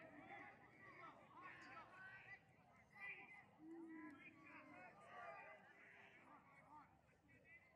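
A crowd of young men cheers and shouts outdoors.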